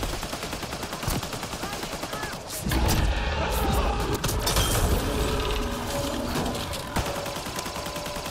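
Weapons fire in short bursts.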